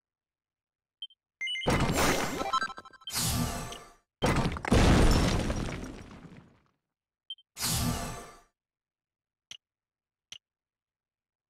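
Short menu blips sound.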